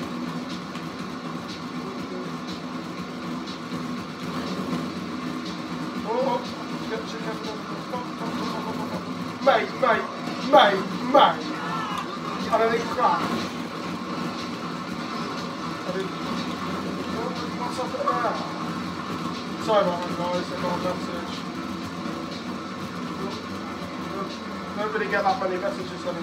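Video game music and effects play from a television.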